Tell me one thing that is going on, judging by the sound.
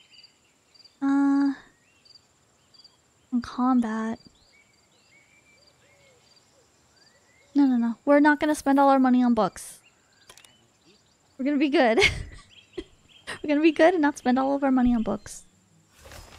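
A young woman speaks animatedly into a close microphone, in short bursts.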